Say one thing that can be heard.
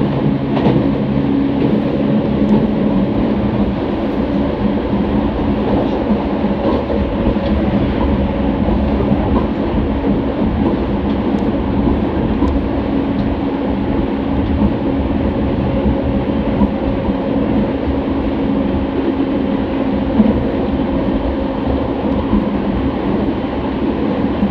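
An electric commuter train hums and rumbles along the rails, heard from inside a carriage.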